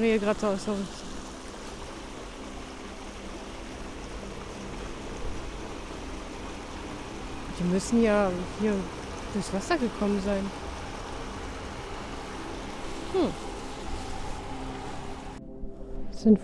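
A shallow stream gurgles and splashes over stones.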